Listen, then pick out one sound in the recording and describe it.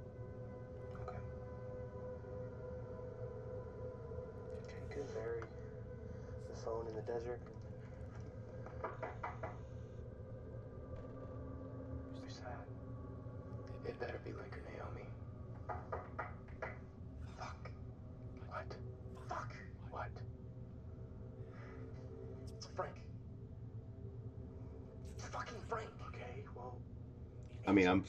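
A young man speaks quietly in short bursts.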